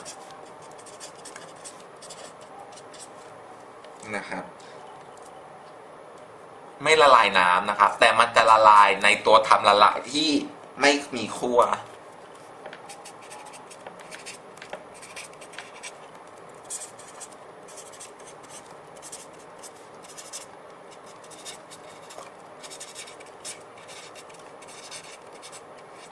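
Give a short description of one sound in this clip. A felt-tip pen squeaks and scratches across paper.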